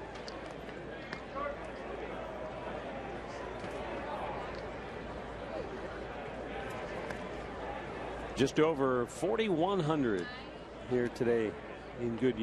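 A crowd murmurs softly in an outdoor stadium.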